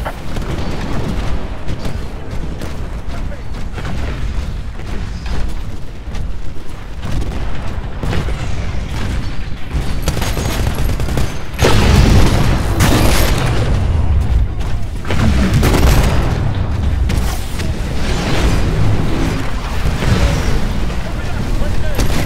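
Heavy mechanical footsteps thud steadily.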